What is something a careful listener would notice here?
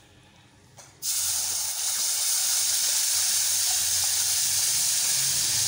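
Sugar syrup sizzles and bubbles loudly in a pan.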